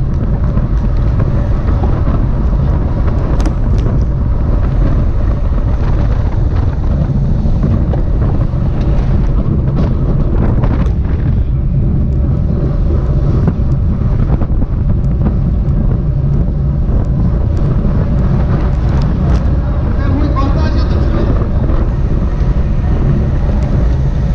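Wind buffets loudly against a close microphone.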